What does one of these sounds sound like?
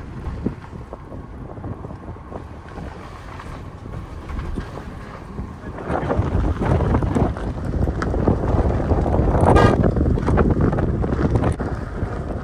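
A car rumbles along a rough gravel road.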